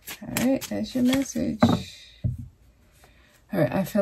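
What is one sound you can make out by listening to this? Playing cards riffle and slap as they are shuffled by hand.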